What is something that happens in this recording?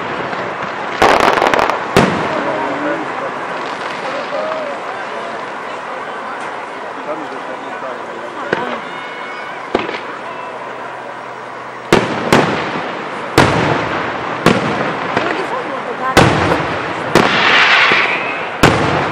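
Fireworks crackle and fizzle as they burst.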